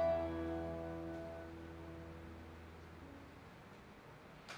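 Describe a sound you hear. An acoustic guitar chord rings out and slowly fades.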